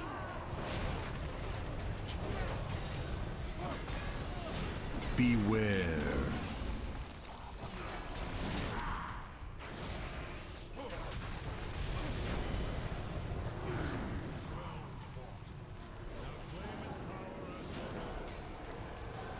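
Spell effects and weapon hits crackle and clash throughout a game battle.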